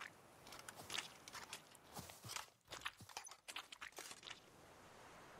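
Footsteps tread lightly on grass.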